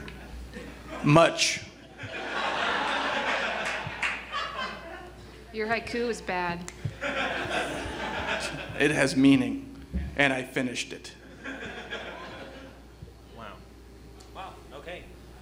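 Actors speak with animation in a large room.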